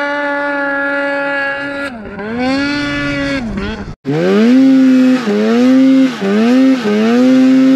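A snowmobile engine drones and revs up and down close by.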